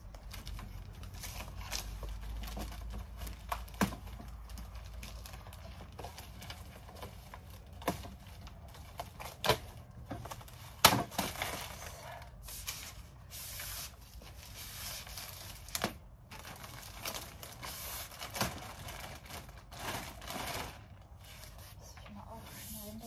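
A plastic sheet rustles and crinkles as it is handled.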